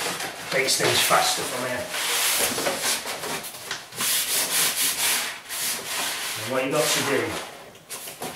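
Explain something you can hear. Wallpaper rustles and crinkles as it is folded on a pasting table.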